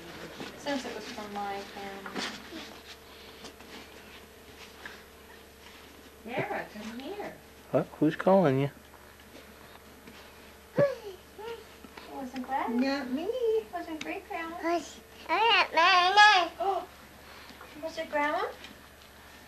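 A toddler babbles and coos nearby.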